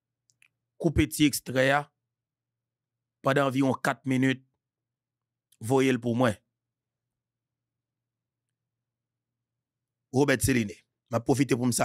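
A man speaks into a close microphone in short, emphatic phrases with pauses between.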